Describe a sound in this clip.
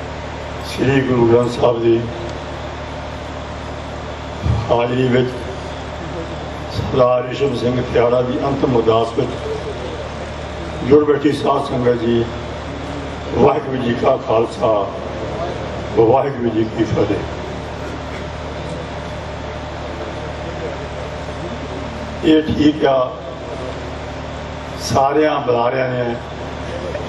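An elderly man speaks slowly in short phrases through a microphone and loudspeakers, outdoors.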